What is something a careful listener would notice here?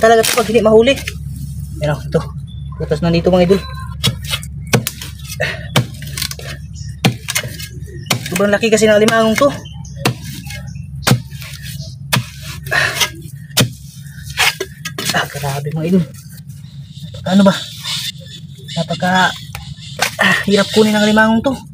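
Wet mud squelches as hands dig into it.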